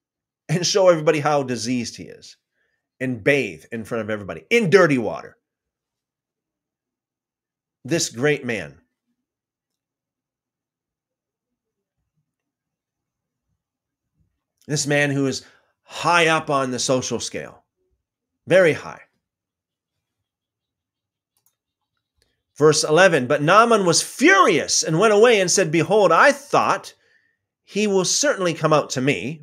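A middle-aged man speaks with animation close to a microphone, in bursts with pauses.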